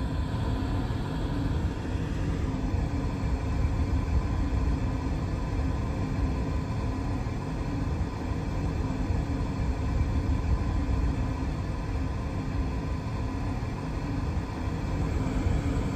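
A subway train's motor hums steadily with a low rumble.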